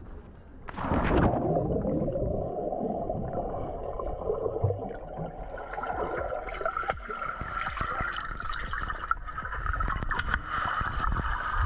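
Water rushes and bubbles in a muffled underwater roar.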